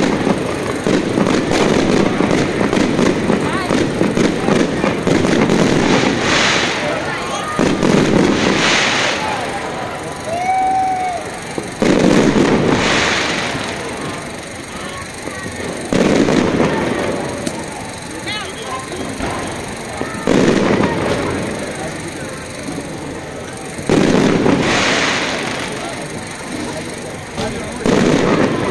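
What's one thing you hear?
Fireworks burst with loud booms, one after another.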